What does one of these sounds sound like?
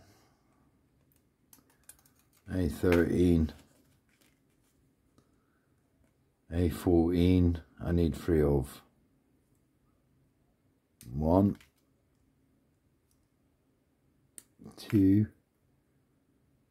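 Small side cutters snip through plastic with sharp clicks.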